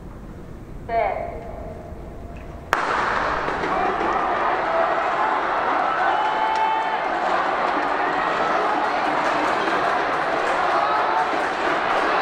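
Hurdles clatter as runners clip them.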